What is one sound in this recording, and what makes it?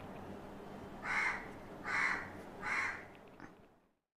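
A makeup brush brushes softly across skin.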